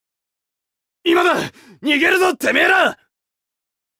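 A man shouts roughly.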